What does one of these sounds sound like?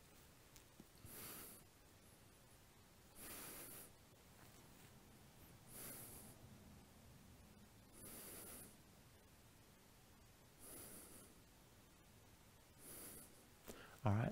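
A man breathes out slowly and deeply, close by, every couple of seconds.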